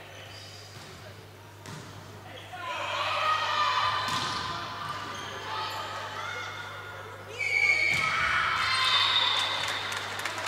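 A volleyball is struck hard during a rally.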